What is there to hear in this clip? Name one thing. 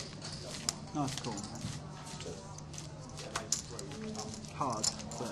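A man speaks casually at a table nearby.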